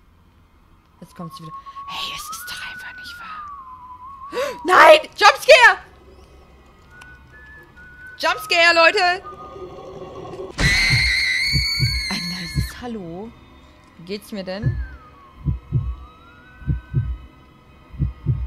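A young woman talks and laughs with animation into a close microphone.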